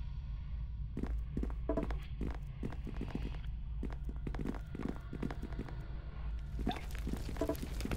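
Footsteps tap steadily across a wooden floor.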